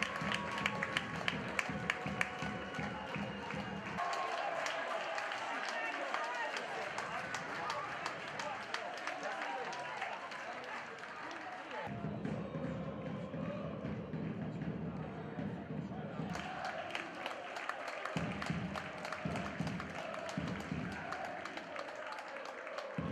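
Many people clap their hands in quick applause.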